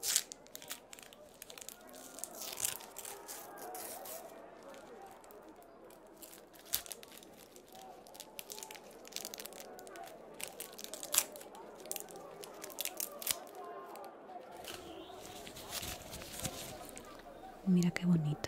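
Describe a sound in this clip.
Gloved fingers tap and crackle near the microphone.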